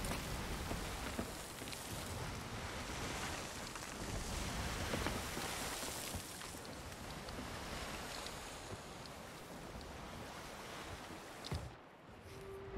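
Ocean waves surge and wash against a wooden ship's hull.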